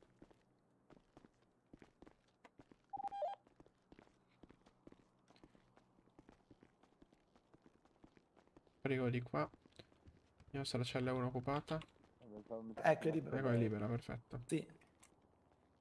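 Footsteps tap softly on a hard floor and stairs.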